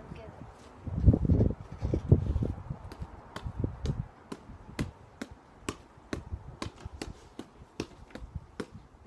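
A football thumps repeatedly against a foot and knee.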